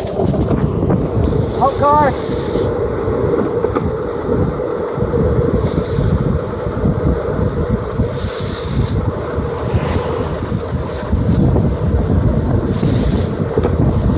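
Skateboard wheels roar steadily over rough asphalt.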